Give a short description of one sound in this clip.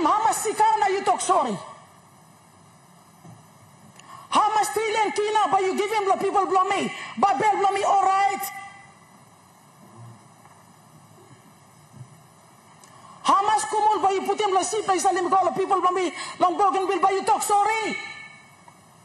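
A middle-aged woman speaks loudly and with emotion into a microphone, pausing between bursts.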